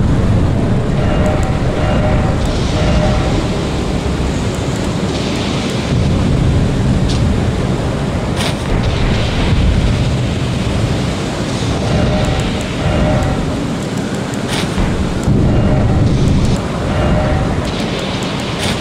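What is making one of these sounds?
Soft electronic menu ticks sound in quick bursts.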